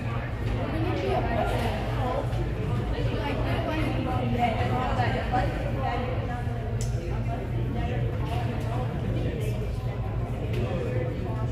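Voices echo around a large hall.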